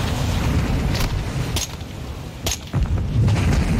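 Gunshots crack sharply.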